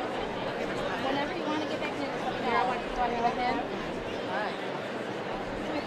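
People in a crowd call out and cheer now and then.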